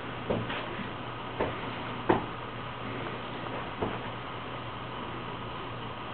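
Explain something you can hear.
A cloth rustles and brushes close by.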